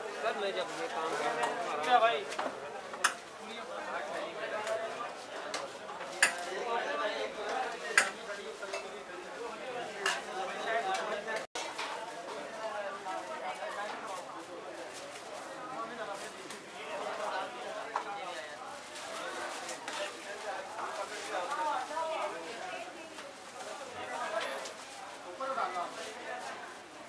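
A crowd of people talks loudly nearby.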